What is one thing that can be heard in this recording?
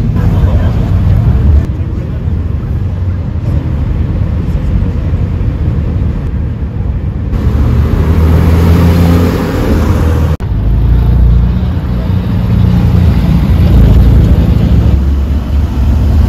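Car engines roar and rev as cars pull away one after another.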